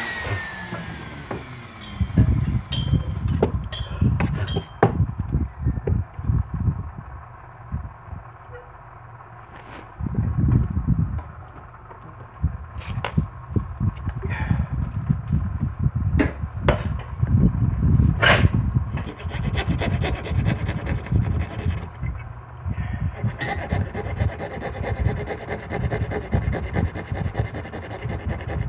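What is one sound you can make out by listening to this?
Tools knock and scrape against a wooden board close by.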